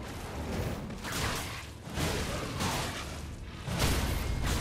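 A large creature's wings flap with loud whooshing gusts.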